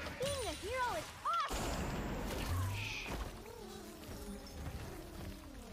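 Video game effects crash and whoosh.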